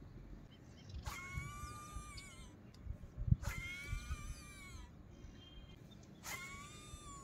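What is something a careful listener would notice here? A fishing reel whirs loudly as a line is cast.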